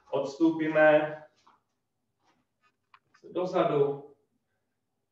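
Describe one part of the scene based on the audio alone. A man speaks calmly and clearly nearby, pausing between phrases.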